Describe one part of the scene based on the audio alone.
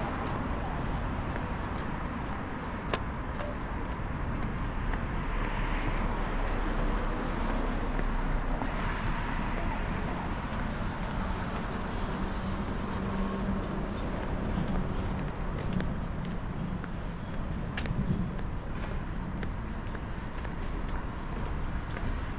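City traffic hums steadily in the distance.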